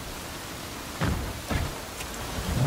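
A car door opens and thumps shut.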